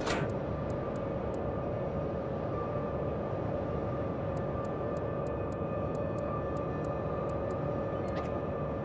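A ship's engine rumbles steadily.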